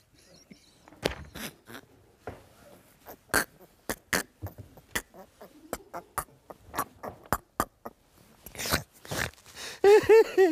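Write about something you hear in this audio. A man laughs loudly and helplessly.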